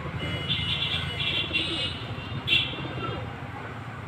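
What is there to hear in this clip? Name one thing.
A pigeon flaps its wings in flight.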